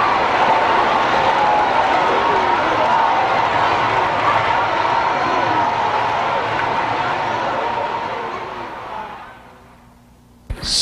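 An audience applauds and cheers in a large echoing hall, then fades away.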